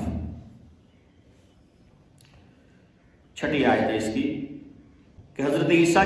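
An elderly man recites in a slow, chanting voice through a headset microphone.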